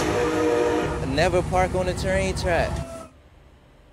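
A train rumbles past.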